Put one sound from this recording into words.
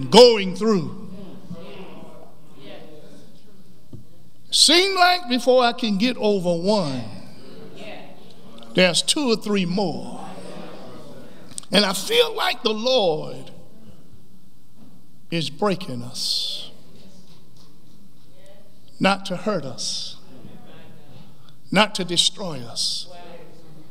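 A man speaks slowly and with emphasis into a microphone, in bursts with pauses, in a slightly echoing room.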